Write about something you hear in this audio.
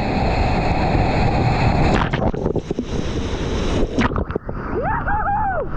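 A paddle splashes through churning water.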